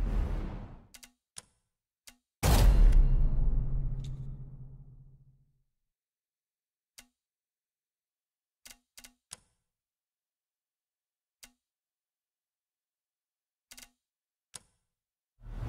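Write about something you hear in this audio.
Short soft clicks tick one by one.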